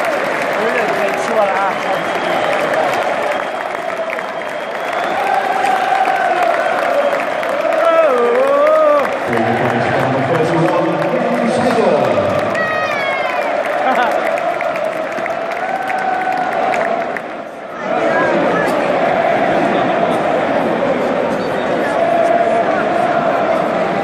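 A large crowd sings loudly together in an open stadium.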